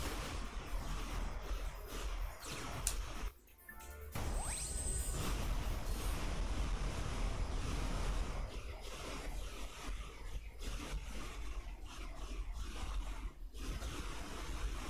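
Explosions burst and crackle.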